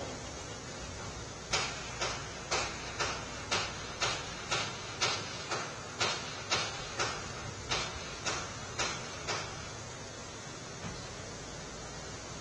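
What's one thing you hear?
A vehicle engine idles steadily.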